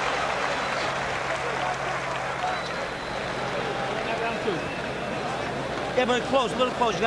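A large crowd roars in a big echoing arena.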